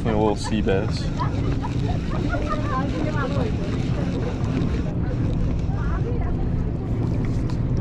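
A fishing reel clicks and whirs as its handle turns.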